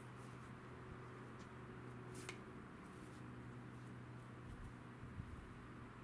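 Bare feet patter softly on concrete.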